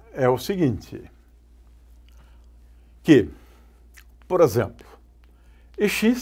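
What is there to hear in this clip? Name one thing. An elderly man speaks in short, halting phrases, heard up close through a microphone.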